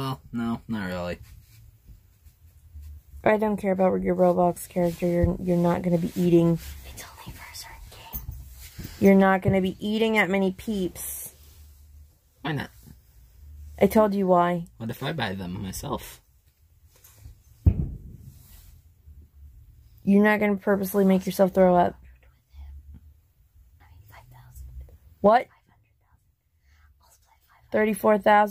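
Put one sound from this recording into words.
A woman talks close by in a tired, weary voice, in short bursts with pauses.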